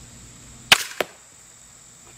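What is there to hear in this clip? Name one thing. A bolt strikes a target with a thud.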